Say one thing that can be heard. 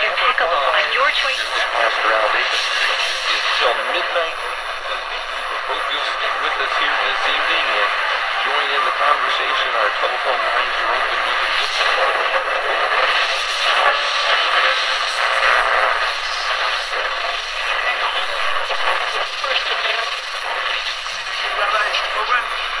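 A small portable radio plays a broadcast through its tinny speaker, with hiss.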